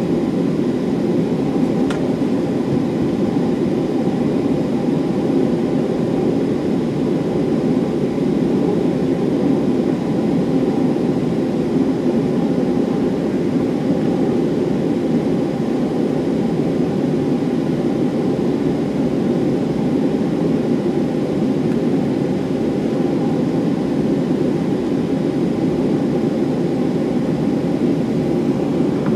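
Aircraft wheels rumble over the runway.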